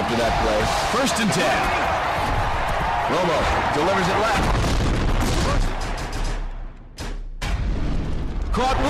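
A stadium crowd roars and cheers.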